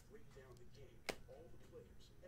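A stack of cards taps sharply on a box.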